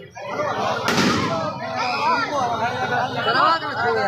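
Firecrackers burst with loud bangs and crackles.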